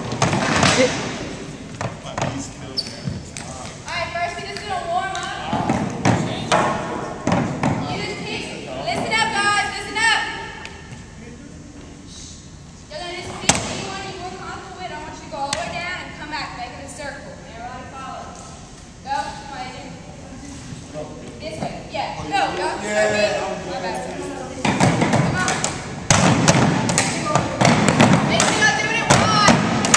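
Several young people talk and call out in a large echoing gym.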